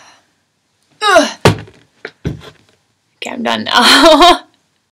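A young woman speaks cheerfully and close up.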